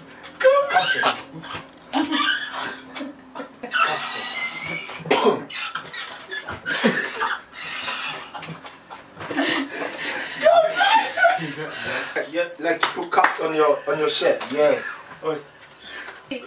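Several young men laugh together nearby.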